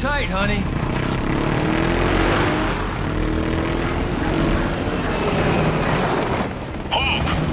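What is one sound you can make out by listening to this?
A motorcycle engine revs and roars as the bike pulls away.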